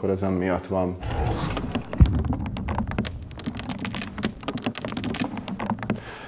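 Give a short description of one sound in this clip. Small berries scatter and bounce on a wooden table.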